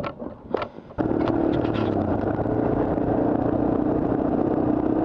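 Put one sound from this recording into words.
A motorcycle engine drones steadily close by.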